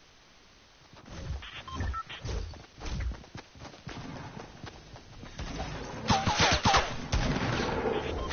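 Game sound effects and music play loudly.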